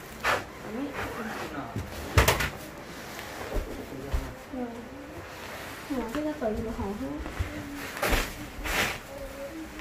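A woman talks nearby in a calm voice.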